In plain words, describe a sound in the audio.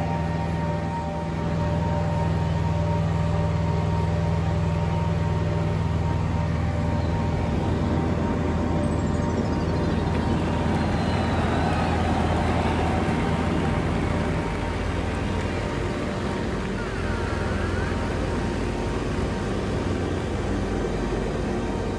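Wind rushes past a small plane.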